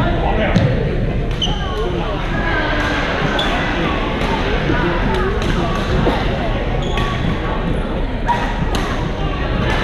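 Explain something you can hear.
Shuttlecocks are struck with rackets, with sharp pops echoing in a large hall.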